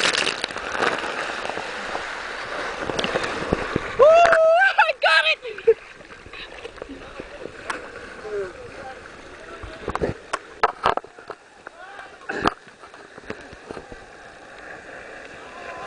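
Water rushes steadily down a slide.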